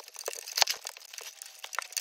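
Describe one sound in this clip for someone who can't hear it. Footsteps crunch in snow.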